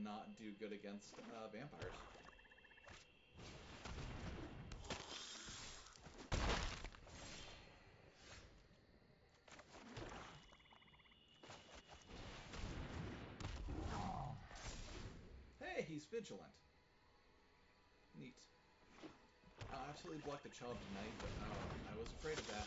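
Cards slide and snap down with soft swishes.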